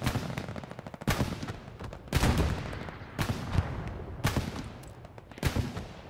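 Footsteps thud on wooden boards and stone.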